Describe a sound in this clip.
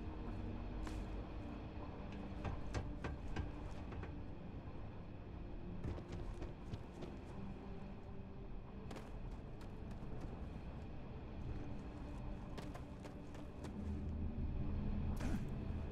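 Footsteps clank on metal stairs and grating.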